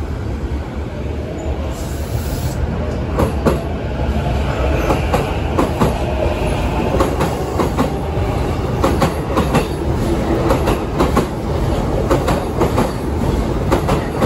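A train rumbles past close by, its wheels clattering over rail joints.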